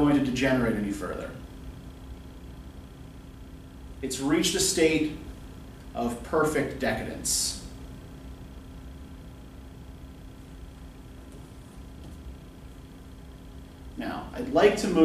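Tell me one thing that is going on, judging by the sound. A middle-aged man speaks calmly in short bursts with pauses.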